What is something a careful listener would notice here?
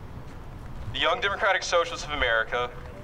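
A young man speaks loudly through a megaphone outdoors.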